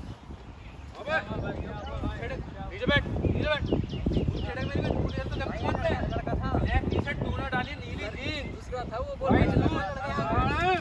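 Young men talk with animation close by, outdoors.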